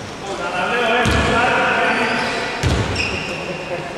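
A basketball bounces on a wooden floor in an echoing hall.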